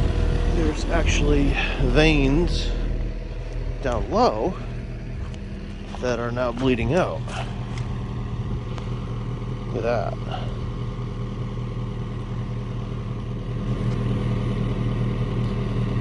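A digger's engine rumbles steadily close by.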